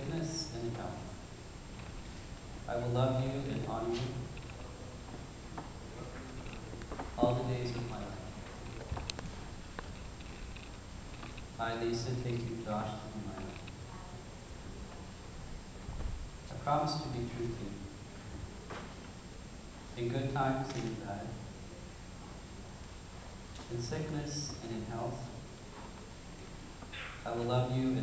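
A young man repeats short phrases calmly.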